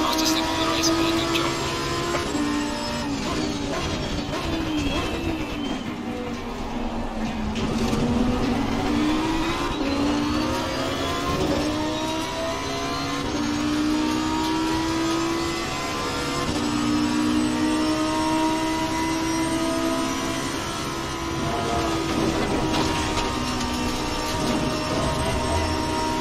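A racing car engine roars, rising and falling in pitch as it shifts gears.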